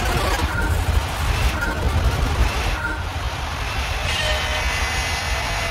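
Electronic countdown beeps sound, ending in a longer, higher tone.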